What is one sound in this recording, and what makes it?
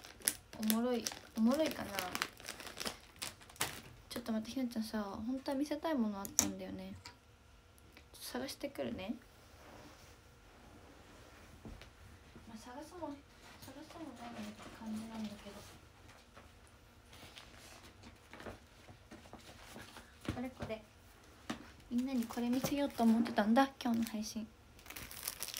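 A young woman talks softly and close to a microphone.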